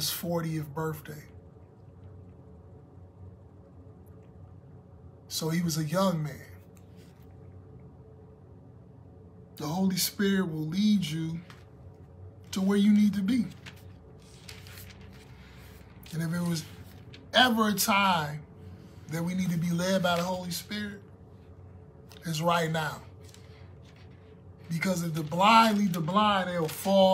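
A man speaks calmly and close up, with pauses between phrases.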